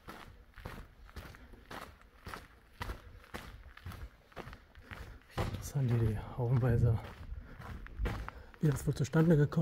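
Footsteps crunch on gravel, echoing in a tunnel.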